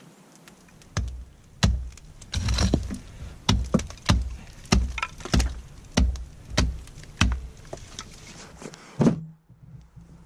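An axe chops into frozen ground with repeated heavy thuds.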